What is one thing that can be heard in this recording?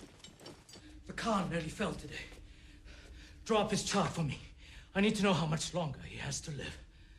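An older man speaks quietly and urgently nearby.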